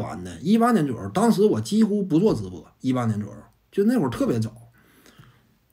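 A man talks calmly, close to a clip-on microphone.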